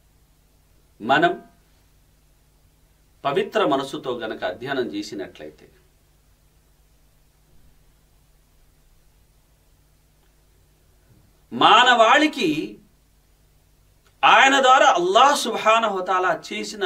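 A middle-aged man speaks with emphasis, close to a microphone, in short bursts with pauses.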